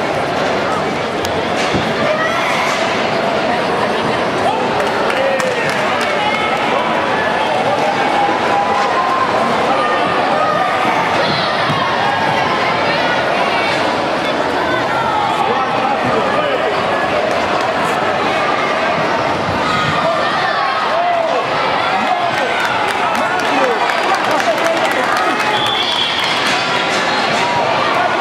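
A crowd chatters throughout a large echoing hall.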